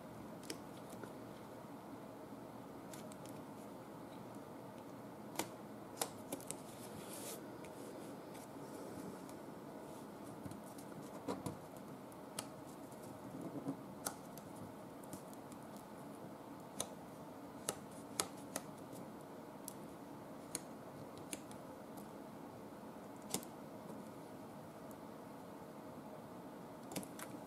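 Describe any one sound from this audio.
Fingers tap and click against paper.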